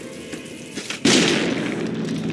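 A gun fires with a heavy blast.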